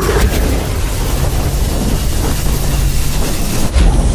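A loud explosion booms and roars.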